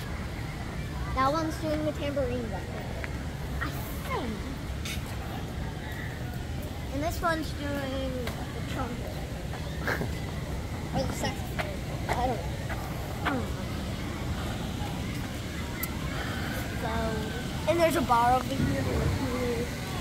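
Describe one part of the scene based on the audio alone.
A young girl talks with excitement close by.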